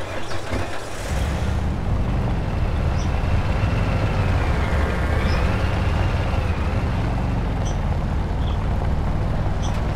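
A truck engine rumbles while driving.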